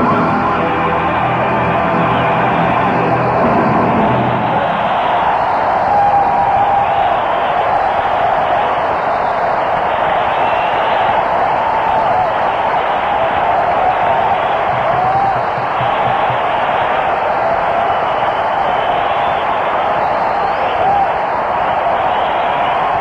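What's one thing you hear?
An electric guitar plays loudly in a large echoing hall.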